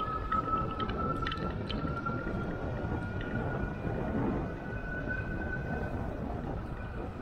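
Wind rushes and buffets steadily outdoors.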